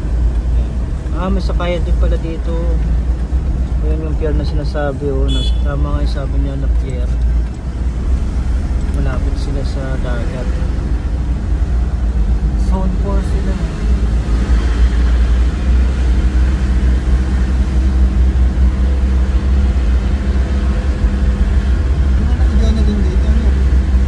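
A car engine hums steadily from inside the car as it drives along.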